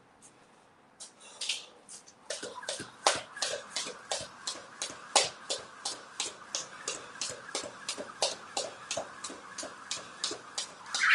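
A jump rope slaps the floor in a quick, steady rhythm.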